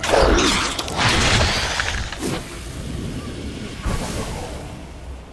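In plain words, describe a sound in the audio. Heavy blows land in a fierce fight.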